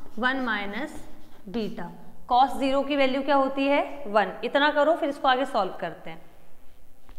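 A young woman speaks clearly, explaining like a teacher.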